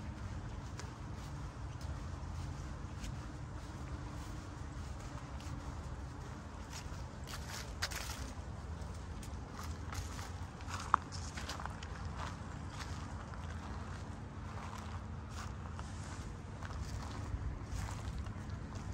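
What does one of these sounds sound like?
Small waves lap gently against a stony shore.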